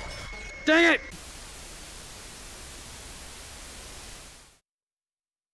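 Loud static hisses steadily, then cuts off.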